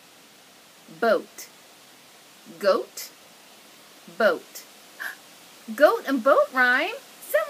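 A woman speaks clearly and expressively close to the microphone, in short separate words.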